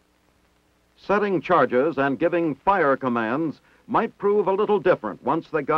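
A man speaks into a radio handset close by.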